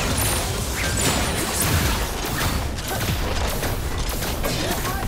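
Magic blasts and hits crackle and thump in a fast fight.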